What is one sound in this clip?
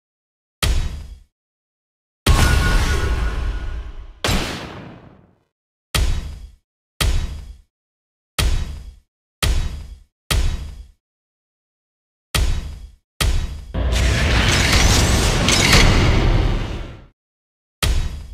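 Short electronic game sound effects play in quick bursts.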